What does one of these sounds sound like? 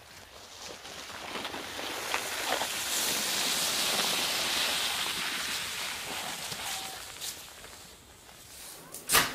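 A sled scrapes and hisses over packed snow, growing louder as it passes close by.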